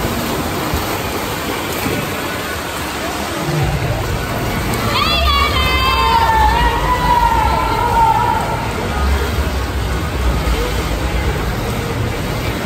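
Swimmers splash and kick through the water.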